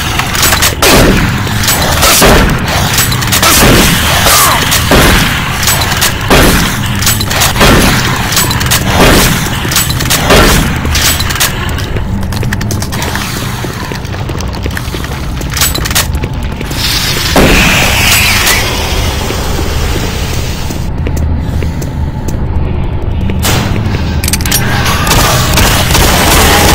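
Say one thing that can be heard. A shotgun fires loudly, again and again.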